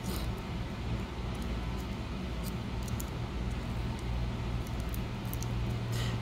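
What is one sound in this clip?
Metal tweezers tick lightly against tiny parts on a hard surface.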